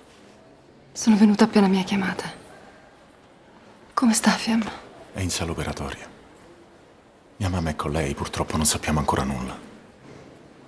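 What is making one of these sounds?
A man speaks in a low, calm voice up close.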